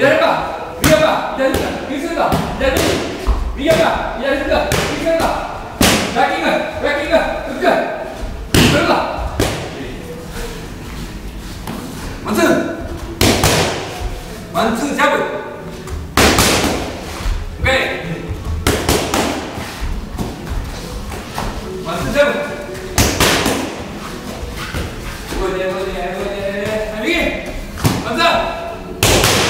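Gloved punches thud against pads.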